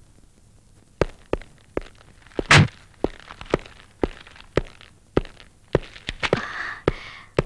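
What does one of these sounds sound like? Footsteps tap on a hard floor at a steady walking pace.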